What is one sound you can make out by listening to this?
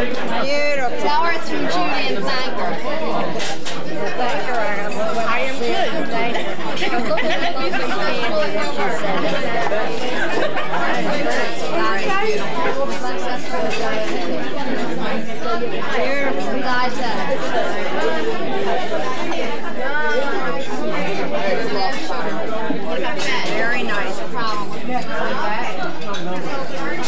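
Many people chatter at once in a crowded room.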